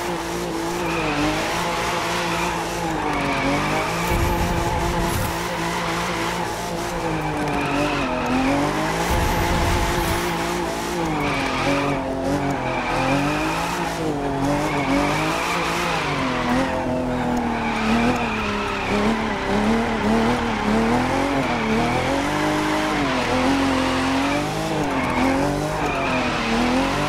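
A car engine roars and revs up and down as it drifts.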